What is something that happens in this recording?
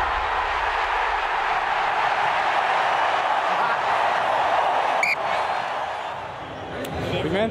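A large crowd cheers and roars loudly in a big stadium.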